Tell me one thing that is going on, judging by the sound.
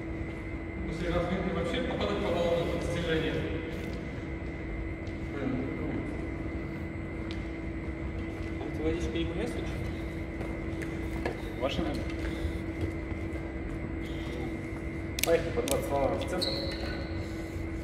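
A man speaks calmly close by in an echoing hall.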